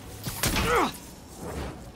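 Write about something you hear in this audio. Glass cracks and shatters.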